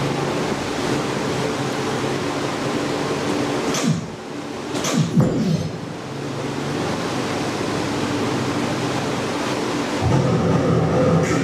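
Upbeat electronic game music plays loudly through a loudspeaker.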